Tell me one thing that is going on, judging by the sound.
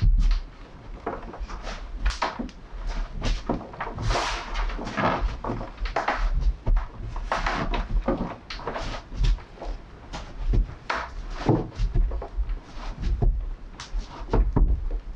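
Hands knead and press dough with soft thumps and rustles.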